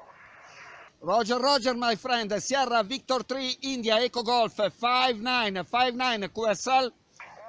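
A man speaks clearly and calmly into a radio microphone close by.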